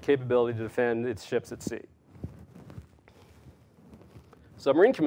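A middle-aged man speaks with animation into a microphone in a large room.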